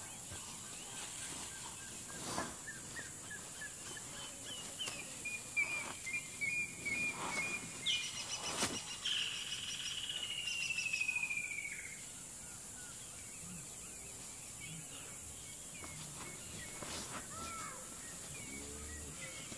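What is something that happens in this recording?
Leaves rustle as an elephant pulls at branches with its trunk.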